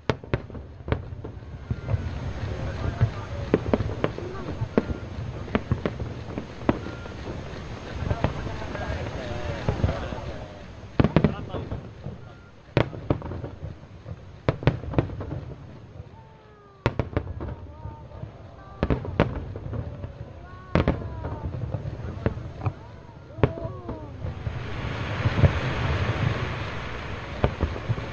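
Fireworks boom and crack overhead, echoing across open water.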